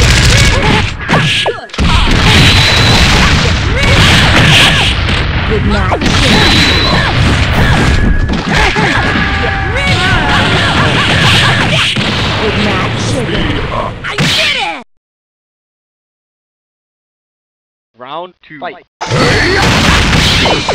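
Punches and hit effects crack and thud in a fighting video game.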